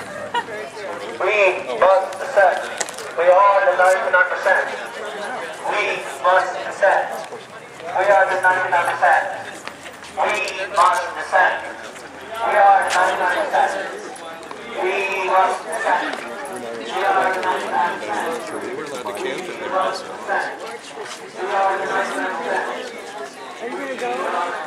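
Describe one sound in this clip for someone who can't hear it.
A crowd of men and women chants loudly in unison outdoors.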